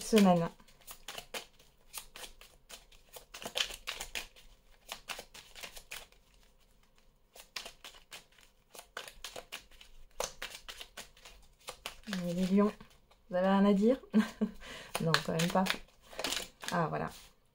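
Playing cards riffle and shuffle with quick crisp clicks.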